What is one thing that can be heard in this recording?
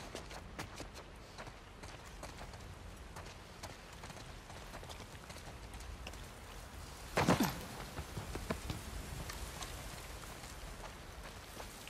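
Footsteps crunch over rubble and debris.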